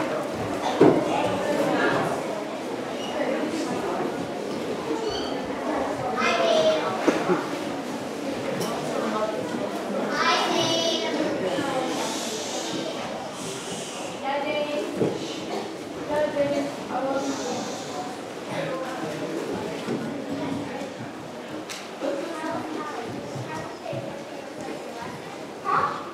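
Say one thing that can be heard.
A seated audience of children and adults chatters and murmurs in a large hall.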